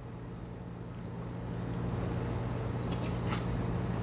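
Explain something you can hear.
Milk pours softly into a cup.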